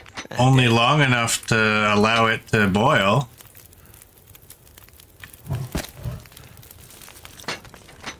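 A fire crackles softly inside a stove.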